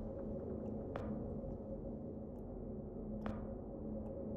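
A sharp click sounds twice.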